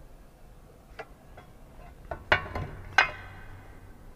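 A metal ruler clicks against a metal bar.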